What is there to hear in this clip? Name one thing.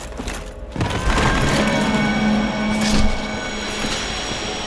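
An eerie ghostly drone hums.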